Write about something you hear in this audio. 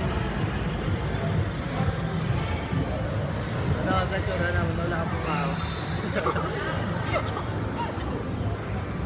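A busy indoor crowd murmurs in an echoing hall.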